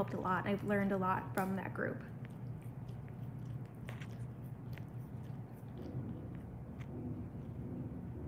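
A dog gnaws and chews on a bone.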